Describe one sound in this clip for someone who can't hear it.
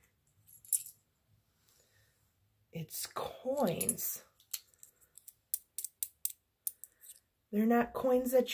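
Coins clink together in a hand.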